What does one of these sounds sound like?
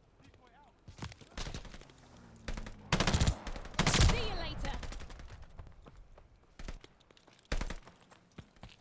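Gunshots crack in rapid bursts in a video game.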